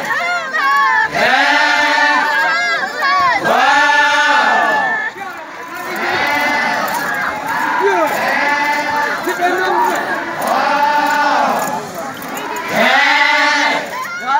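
A group of men chant loudly together in call-and-response bursts, outdoors.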